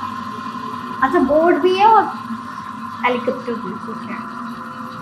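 A young woman speaks briefly with animation, close by.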